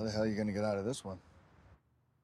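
A man speaks on a phone at close range.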